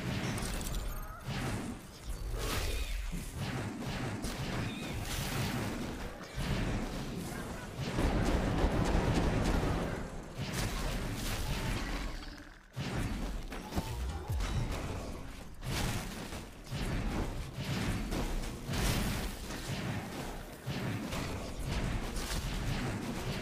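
Spells and blasts crackle and boom in a game battle.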